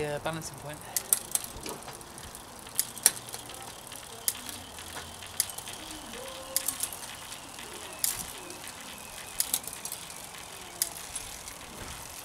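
A bicycle chain clicks and ticks over a rear gear cluster.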